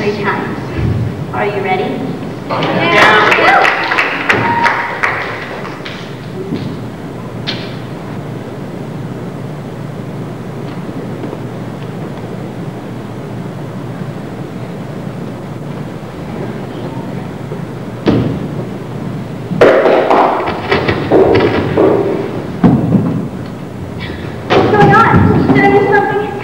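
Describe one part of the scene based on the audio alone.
Children speak loudly in a large echoing hall.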